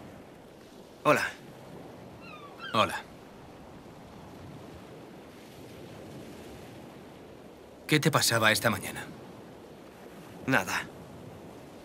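A young man speaks quietly nearby.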